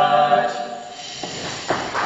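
A group of young men sings together, heard through microphones.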